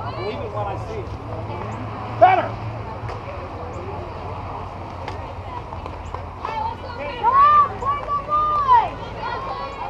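Young women shout and cheer outdoors at a distance.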